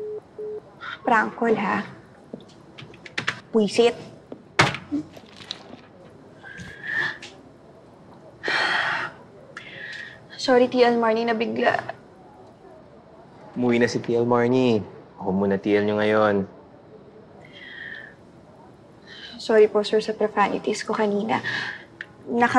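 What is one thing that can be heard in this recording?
A young woman speaks nearby in a tense, hushed voice.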